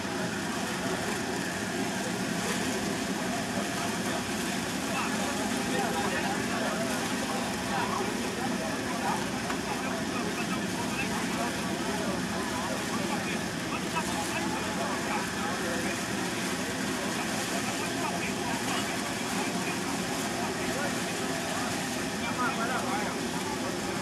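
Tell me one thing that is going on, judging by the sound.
A crowd of men and women talk and call out nearby, outdoors.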